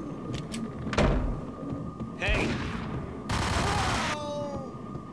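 Gunshots bang loudly in an echoing room.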